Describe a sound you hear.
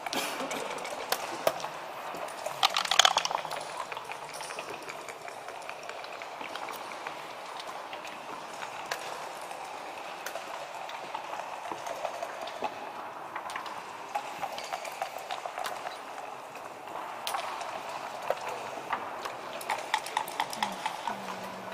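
Game pieces click and slide on a wooden board.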